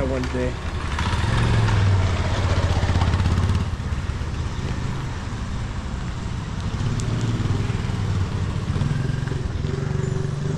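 A motorbike engine rumbles close by as it rides past.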